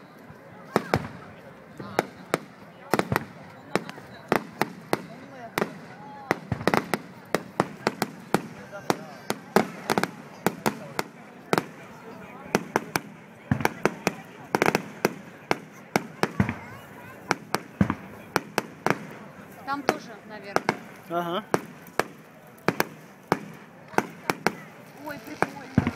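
Fireworks crackle as sparks spread.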